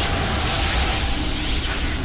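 Electric sparks crackle and snap.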